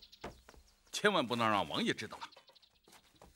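A middle-aged man speaks sternly.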